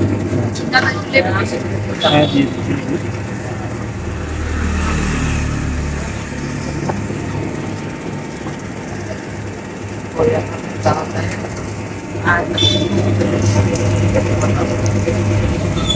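A juicing machine motor hums steadily.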